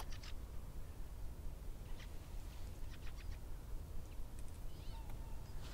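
A hawk gives short sharp calls.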